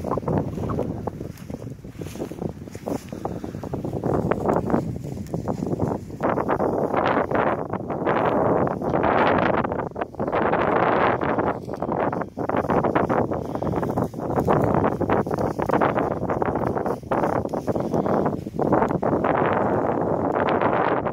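Strong wind gusts roar and buffet outdoors.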